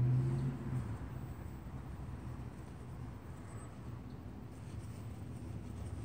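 Small metal parts click and scrape softly between fingers.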